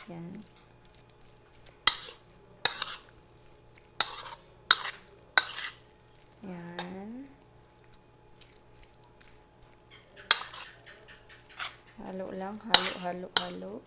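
A spoon clinks and scrapes against a plastic bowl.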